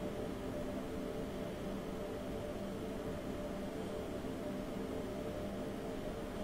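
An electric train hums and rumbles steadily along the tracks.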